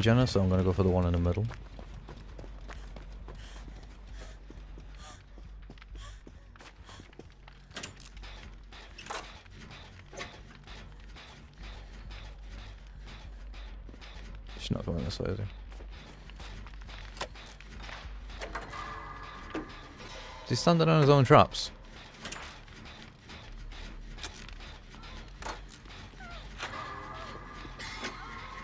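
Footsteps run quickly over snow and wooden floors.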